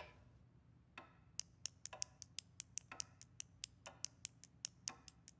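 A knife scrapes in quick, even strokes.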